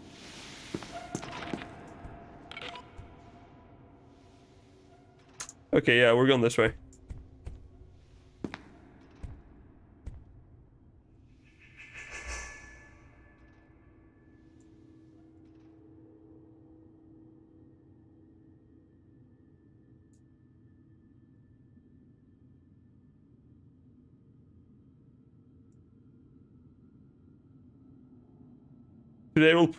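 Footsteps tap steadily on a hard tiled floor.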